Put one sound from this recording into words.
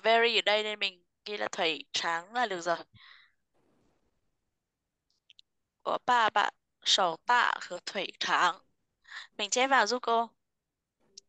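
A woman speaks slowly and clearly over an online call, pausing between phrases.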